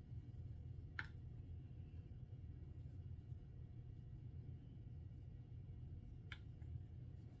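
A wooden stick taps softly against a plastic jar.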